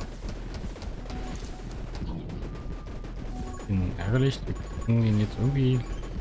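Rapid video game gunshots pop and crackle.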